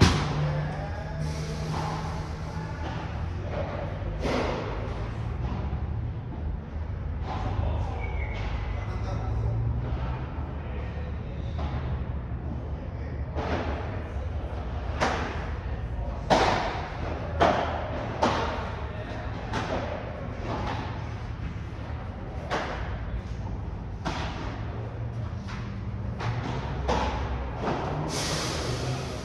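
Padel rackets strike a ball with sharp pops in a large echoing hall.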